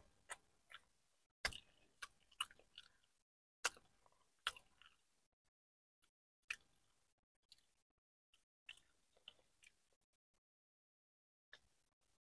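A young woman chews food with wet, smacking sounds close to a microphone.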